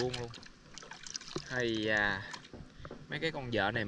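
Water splashes as a small animal drops into it.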